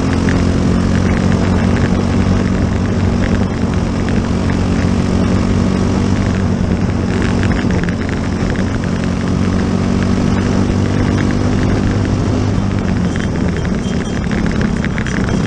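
A racing car engine roars loudly up close, its pitch rising and falling as it shifts gears.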